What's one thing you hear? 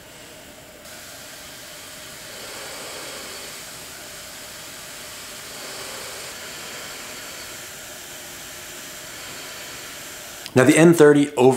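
An air machine blows with a steady soft hiss.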